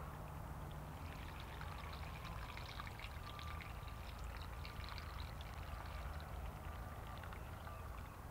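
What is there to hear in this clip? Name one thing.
Liquid pours into a plastic bag.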